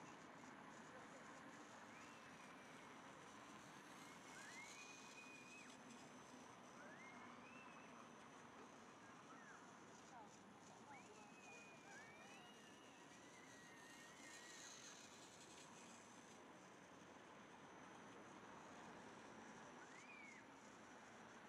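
Light rain patters on wet pavement outdoors.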